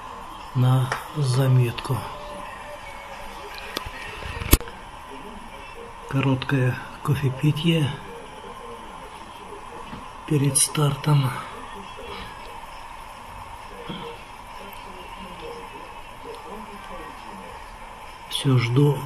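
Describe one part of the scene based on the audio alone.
A man talks in short bursts nearby.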